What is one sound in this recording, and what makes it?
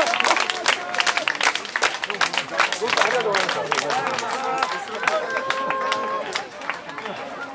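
A crowd claps hands in a rhythm outdoors.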